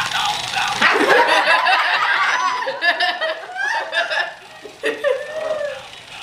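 A young boy laughs.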